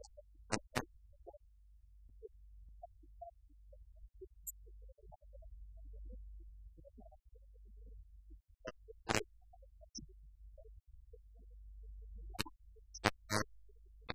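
A man speaks far off in a room.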